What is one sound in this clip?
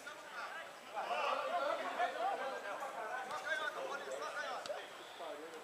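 Men shout to each other in the distance outdoors.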